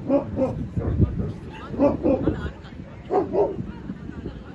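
A woman talks nearby outdoors.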